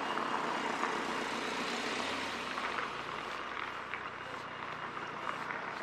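A car drives by on a street nearby.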